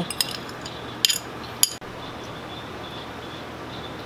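A glass dish clinks lightly as food is set on it.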